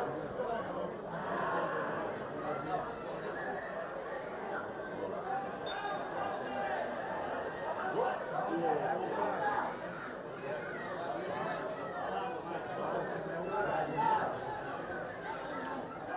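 A crowd of spectators murmurs and calls out across an open stadium.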